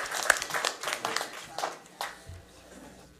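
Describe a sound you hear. An audience claps in applause in a room.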